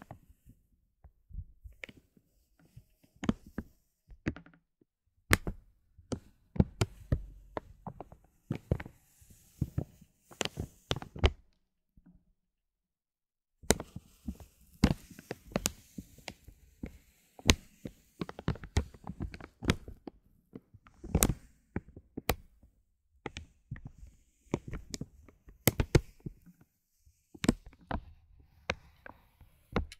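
A brush taps and brushes against hard plastic domes, making soft clicks and crinkles close by.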